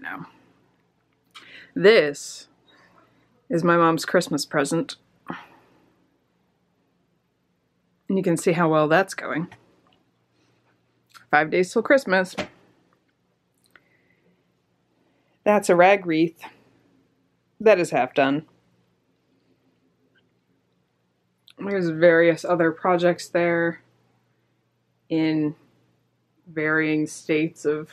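A woman talks calmly close by, in short bursts with pauses.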